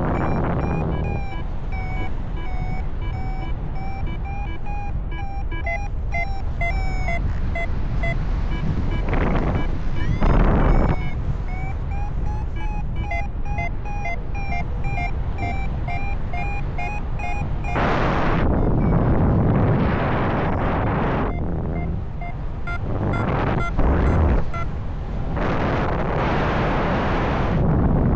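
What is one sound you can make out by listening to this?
Wind rushes and buffets loudly past the microphone.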